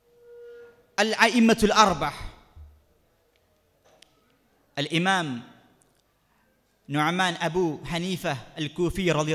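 A young man sings a melodic chant into a microphone, in long held phrases with pauses between.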